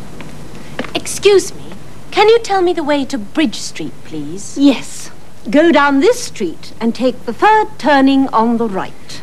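An older woman talks with animation.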